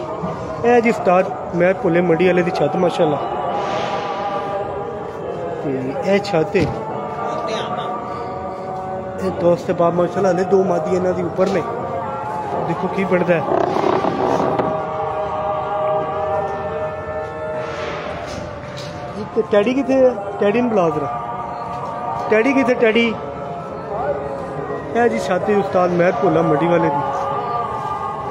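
A man talks nearby in a calm voice.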